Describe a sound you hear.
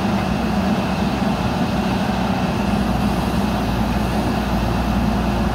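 A backhoe bucket scrapes through soil.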